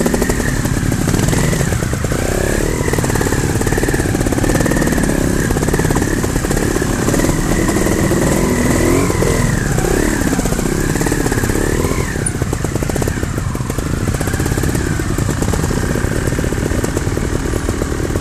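A nearby dirt bike engine revs and putters unevenly.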